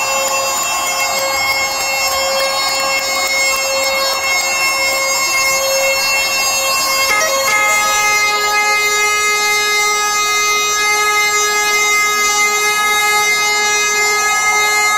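A band plays loud, droning music through loudspeakers in a large echoing hall.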